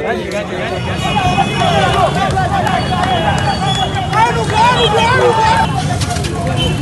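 A crowd shouts and chants outdoors.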